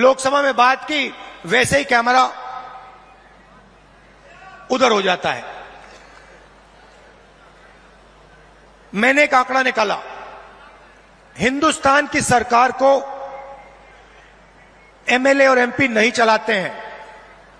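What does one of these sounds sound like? A man speaks forcefully into a microphone over loudspeakers, in short bursts with pauses.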